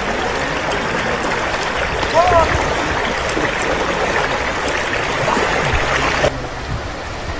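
Floodwater rushes and splashes.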